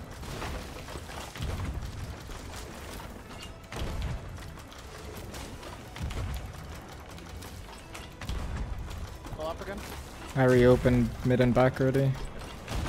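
Ocean waves wash against a wooden ship's hull.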